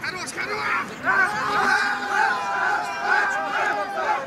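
Young men cheer and yell loudly in celebration.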